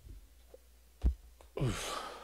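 A small cardboard box is set down on a table with a light knock.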